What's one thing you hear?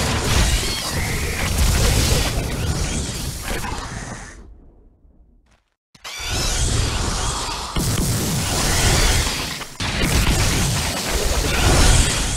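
Flames roar and crackle.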